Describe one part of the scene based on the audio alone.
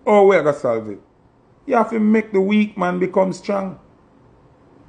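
A man speaks casually and close to a microphone.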